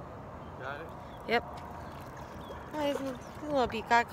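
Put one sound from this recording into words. A fish splashes in the water close by.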